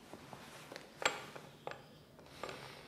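A chess piece clicks down on a wooden board.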